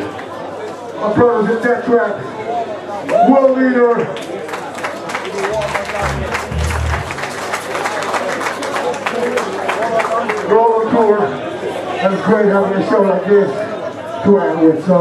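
A band plays loud music with drums and electric guitars.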